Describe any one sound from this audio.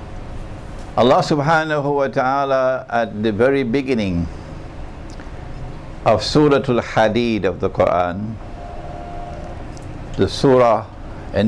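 A middle-aged man speaks slowly and deliberately into a microphone.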